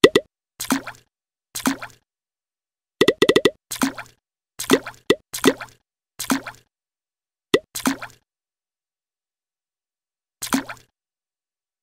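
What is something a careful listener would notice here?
Short bright chime effects play each time a colour is filled in.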